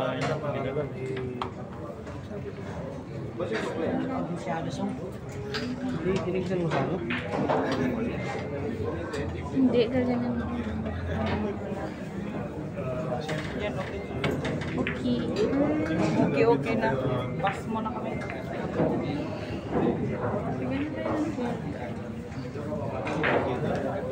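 A crowd of men chatters loudly in a busy, echoing hall.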